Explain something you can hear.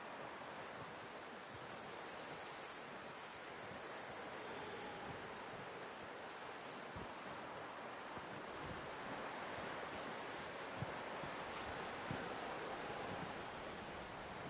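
Boots crunch through deep snow at a steady pace.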